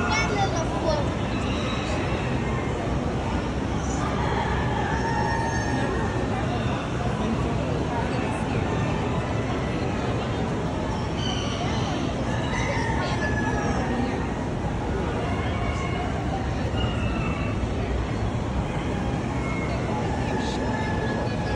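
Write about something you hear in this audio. A crowd of people chatters in a large, echoing hall.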